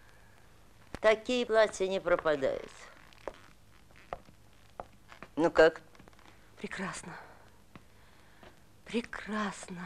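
An elderly woman speaks calmly.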